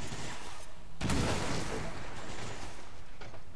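A grenade explodes with a loud, rushing blast.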